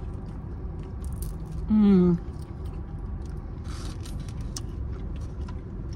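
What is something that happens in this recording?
A woman chews crunchy food close by.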